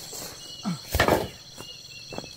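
A long bamboo pole thumps onto the ground.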